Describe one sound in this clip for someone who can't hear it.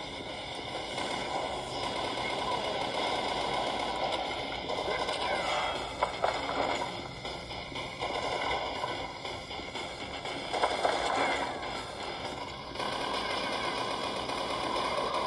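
Gunfire and blasts from a video game play through a small tablet speaker.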